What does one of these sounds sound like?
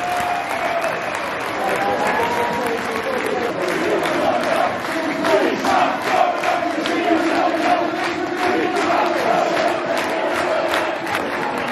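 A large crowd sings and cheers loudly in an open stadium.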